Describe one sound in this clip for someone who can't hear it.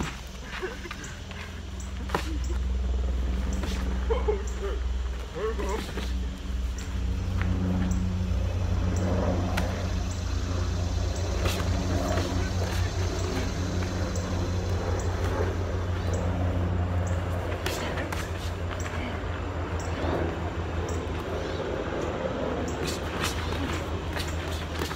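Feet shuffle and scuff on dry ground.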